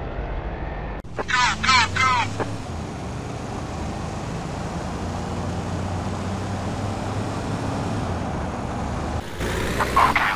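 A car engine hums steadily as it drives along a road.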